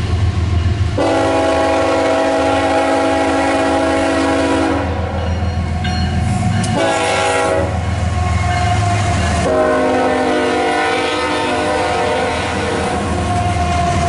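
A train horn blares loudly in long blasts.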